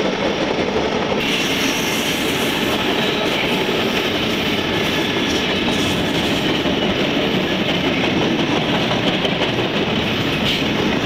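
A long freight train rumbles and clatters steadily along the tracks.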